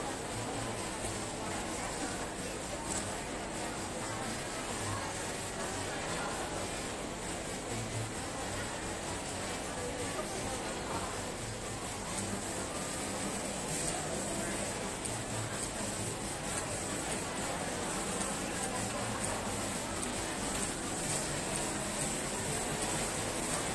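A crowd murmurs and chatters all around.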